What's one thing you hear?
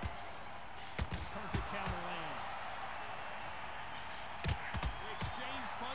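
Punches thud sharply on a boxer's body.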